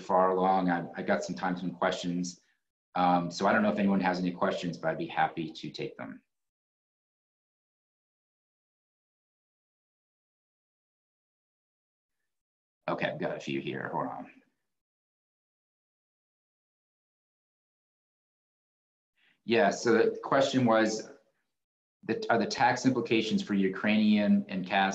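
A man speaks calmly over an online call, with long pauses.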